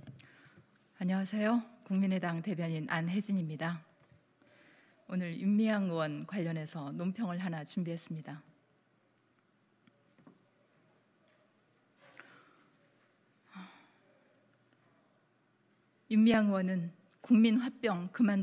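A woman speaks calmly into a microphone, with pauses.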